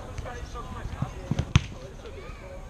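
A football thuds off a kick.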